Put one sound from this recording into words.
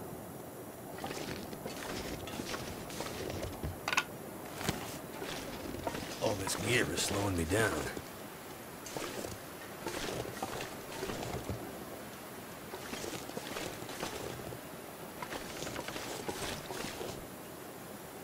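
Footsteps crunch through dry grass at a steady walking pace.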